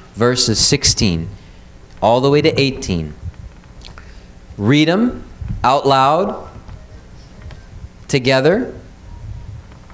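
A man speaks into a microphone over a loudspeaker in a large room, in short phrases with pauses.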